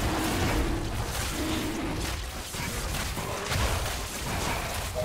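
Fantasy game combat effects clash and whoosh.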